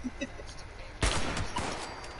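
A gun fires with a loud bang.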